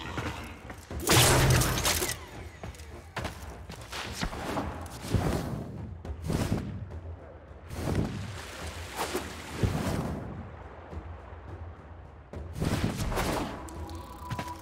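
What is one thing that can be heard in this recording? Loud rushing whooshes come in short bursts as a figure dashes and leaps.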